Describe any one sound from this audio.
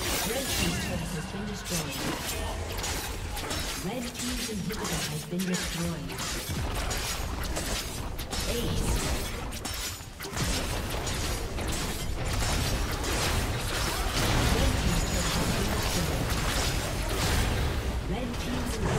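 Game spell effects and attacks crackle and boom.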